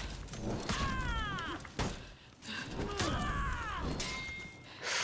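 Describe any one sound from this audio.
A man grunts and shouts with effort.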